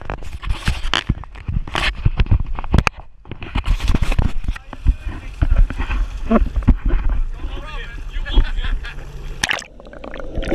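Waves slap and splash against a boat's hull.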